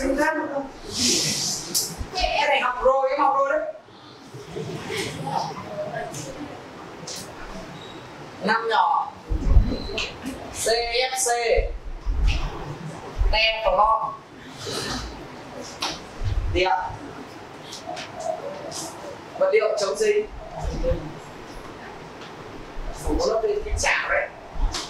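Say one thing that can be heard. A young man speaks calmly to a room, with a slight echo.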